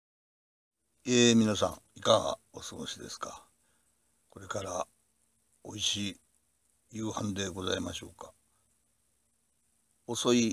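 A middle-aged man talks calmly and close up, with pauses.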